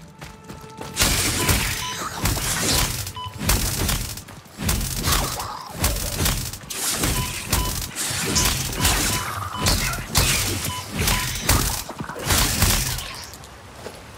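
A beam tool fires in loud crackling bursts.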